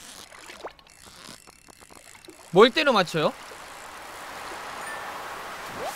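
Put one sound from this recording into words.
A fishing reel whirs as a line is reeled in.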